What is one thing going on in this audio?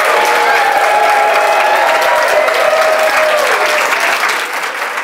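A group of children sing together.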